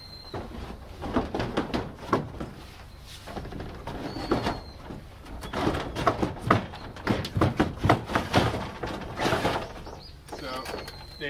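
Wooden shutter boards knock and rattle as they are handled.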